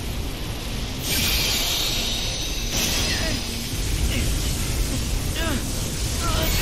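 Magical blasts whoosh and crackle loudly.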